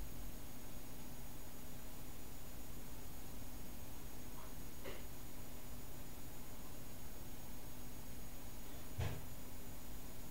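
A small electric motor spins a fan with a low, steady hum.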